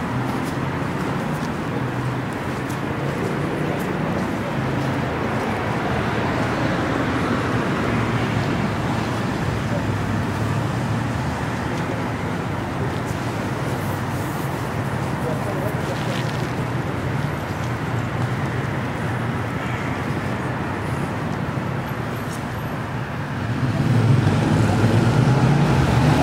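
Steady city traffic hums and rumbles in the distance, outdoors.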